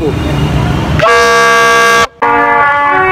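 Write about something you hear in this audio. A plastic horn blares loudly with a steady buzzing tone.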